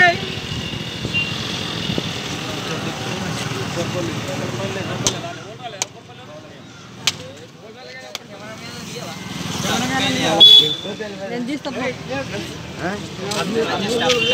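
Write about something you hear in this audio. Several men talk at once nearby, outdoors.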